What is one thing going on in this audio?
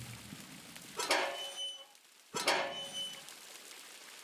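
A door bangs open and rings briefly, twice.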